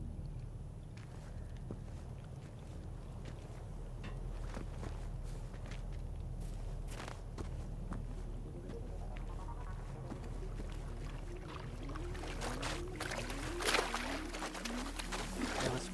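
Water splashes and sloshes as a swimmer strokes through it.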